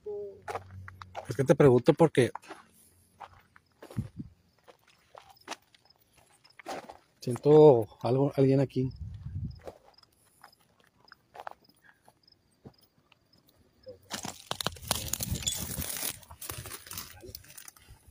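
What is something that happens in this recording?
Footsteps crunch on dry ground and brush.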